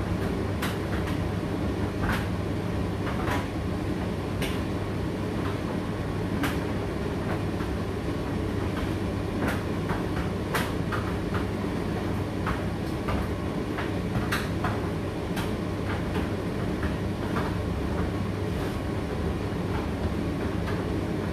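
A condenser tumble dryer hums with its drum turning through a drying cycle.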